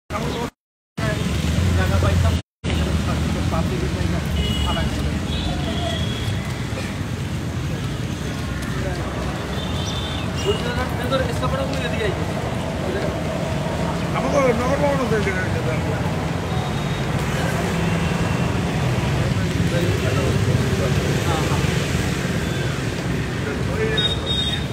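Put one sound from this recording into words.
Footsteps of a group shuffle along a paved road.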